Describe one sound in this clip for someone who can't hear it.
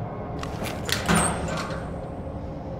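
A metal locker door clanks open.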